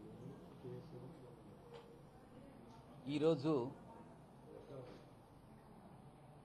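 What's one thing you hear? An elderly man speaks calmly and close into microphones.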